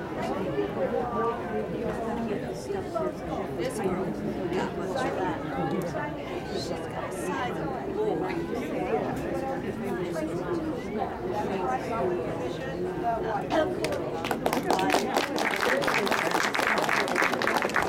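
A middle-aged woman speaks to a small audience with animation.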